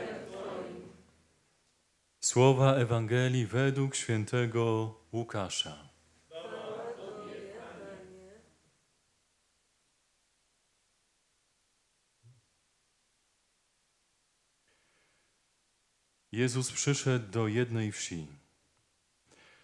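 A man chants slowly through a microphone in an echoing room.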